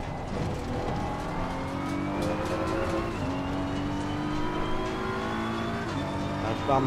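A racing car engine revs hard, rising in pitch and dropping briefly with each gear change.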